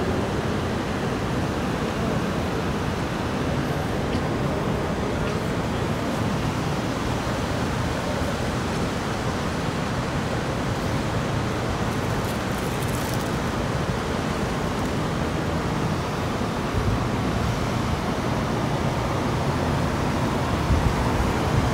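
A steady hum and murmur fill a large echoing hall.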